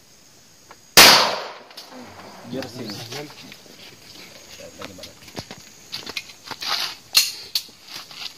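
A handgun fires a shot outdoors.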